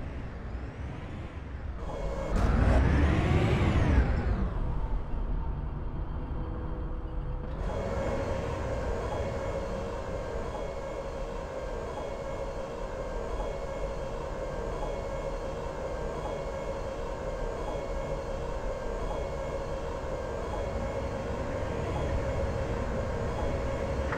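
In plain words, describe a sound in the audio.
A tank engine rumbles steadily and loudly.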